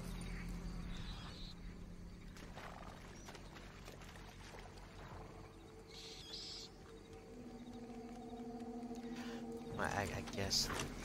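A horse's hooves thud steadily on soft, wet ground.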